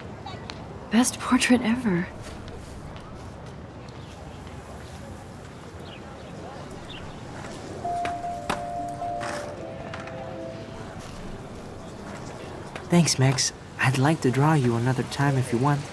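A young man speaks calmly and warmly, close by.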